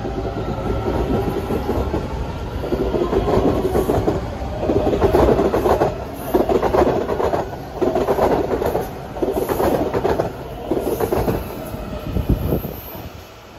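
A metro train rumbles past along the platform with loud clattering wheels.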